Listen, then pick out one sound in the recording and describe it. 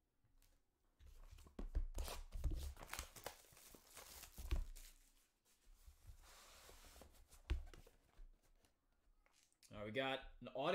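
Cardboard boxes thump and scrape on a table.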